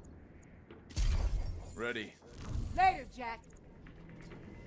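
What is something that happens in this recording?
A gun fires with a heavy boom.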